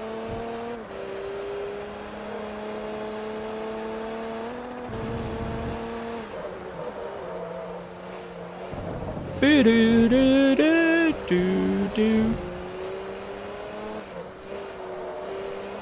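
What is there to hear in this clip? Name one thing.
A racing car's engine whines at high revs, dropping in pitch as it shifts gears.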